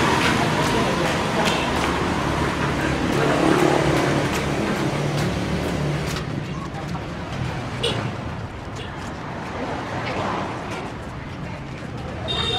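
Footsteps walk over paving outdoors and slowly move away.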